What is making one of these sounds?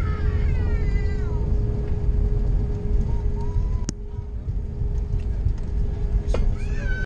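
A jet airliner's engines drone with a steady low roar inside the cabin.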